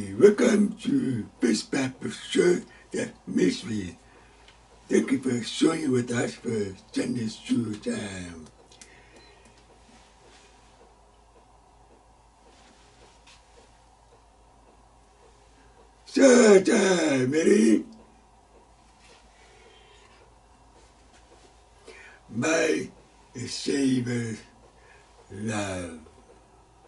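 An elderly man speaks calmly and clearly, close to a microphone, with pauses.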